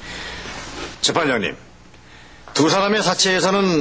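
A middle-aged man speaks loudly and forcefully nearby.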